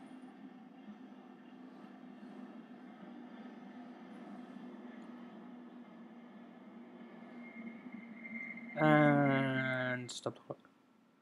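A train rumbles along the rails and slows to a stop.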